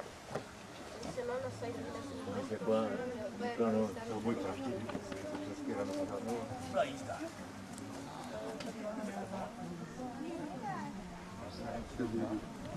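Children and adults talk nearby outdoors.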